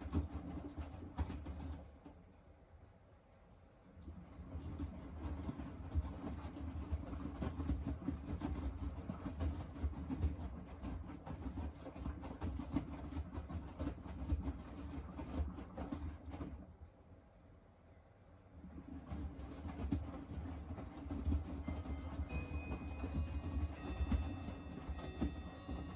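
A washing machine drum turns with a low rumble and pauses now and then.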